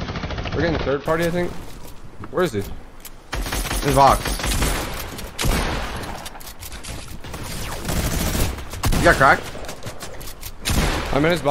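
Building pieces clack and thud in a video game.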